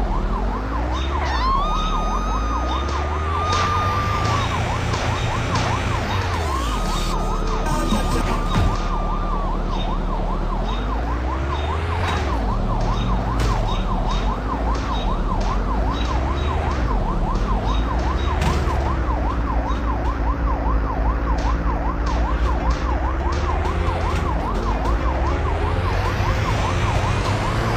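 A car engine revs up and down.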